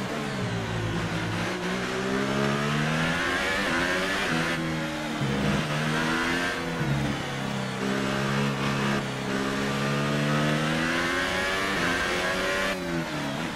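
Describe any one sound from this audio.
A racing car engine screams, rising in pitch as it speeds up and dropping sharply at each gear change.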